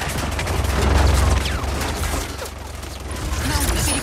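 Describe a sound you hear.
Bullets strike and spark against metal in rapid bursts.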